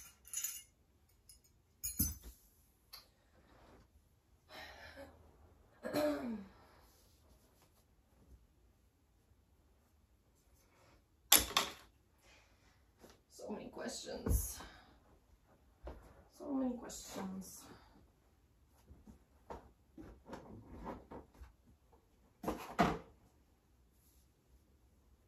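Plastic toys clatter and rattle as they are picked up and tossed.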